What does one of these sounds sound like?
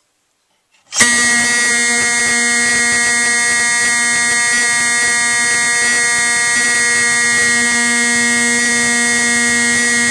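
A fire alarm horn blares loudly and steadily.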